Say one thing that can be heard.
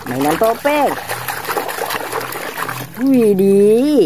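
Water sloshes as a hand stirs it.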